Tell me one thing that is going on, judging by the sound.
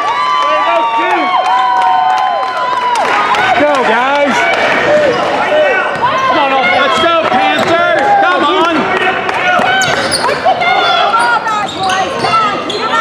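Sneakers squeak sharply on a hard court, over and over.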